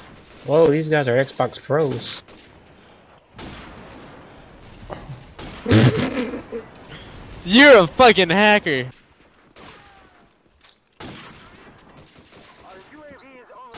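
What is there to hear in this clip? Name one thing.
A sniper rifle fires sharp, loud shots.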